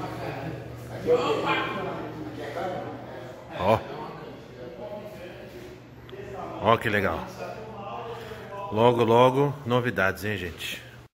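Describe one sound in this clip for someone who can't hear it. Men talk and call out loudly in an echoing room.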